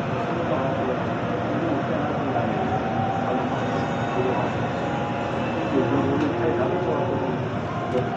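A passing train rushes by close outside the window.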